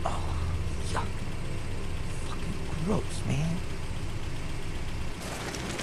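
A young man mutters in disgust, close by.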